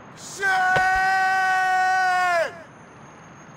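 A man cries out in a long, loud wail that drops off at the end.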